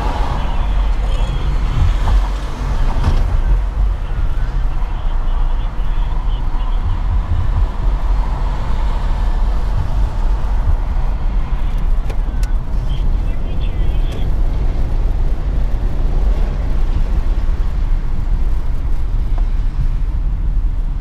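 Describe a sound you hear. Tyres rumble low and steadily on the road.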